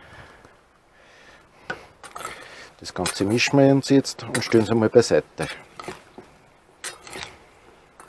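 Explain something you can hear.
A spoon scrapes and clinks in a metal bowl.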